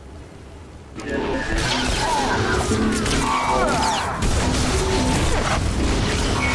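Blaster shots fire rapidly in a loud fight.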